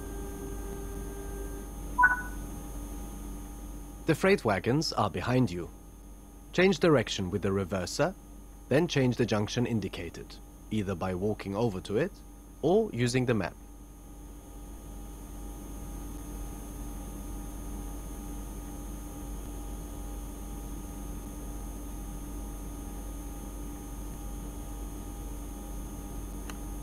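A locomotive's electric motors hum low and steadily.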